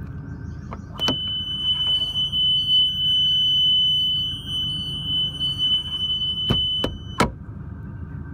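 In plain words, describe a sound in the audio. A metal door latch clicks open and shut.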